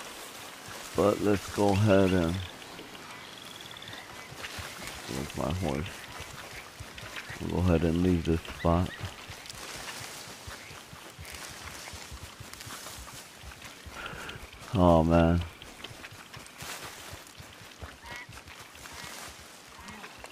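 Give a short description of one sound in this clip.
Footsteps run over wet ground.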